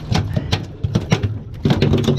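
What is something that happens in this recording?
A fish flaps and thumps on a deck.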